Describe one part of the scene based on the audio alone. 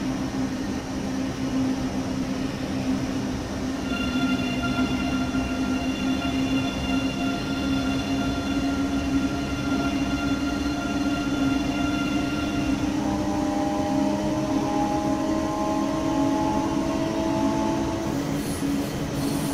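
A train rumbles steadily along the tracks at speed.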